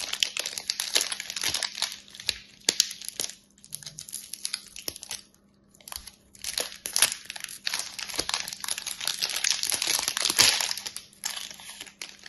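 A blade slices through plastic wrap with soft scratching.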